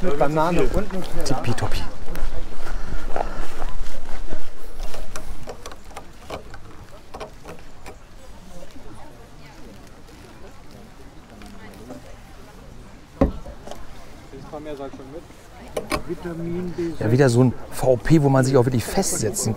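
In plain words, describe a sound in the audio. A middle-aged man talks calmly into a clip-on microphone, close by.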